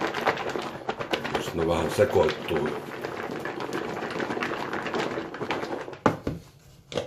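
A plastic container rattles as a hand shakes it.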